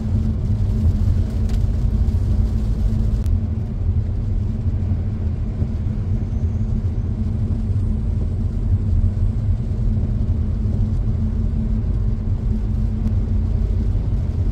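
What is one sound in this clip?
A car engine hums steadily with a low road rumble inside the cabin.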